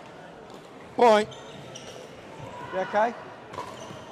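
Shoes squeak on a hard court floor.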